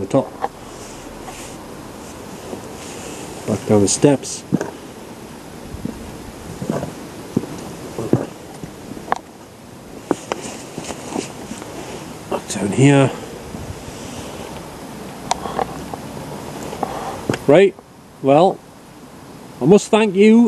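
A middle-aged man speaks in short bursts close to a microphone.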